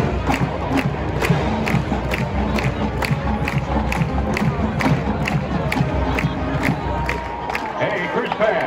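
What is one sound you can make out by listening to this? A marching band's drums beat a steady, fast rhythm.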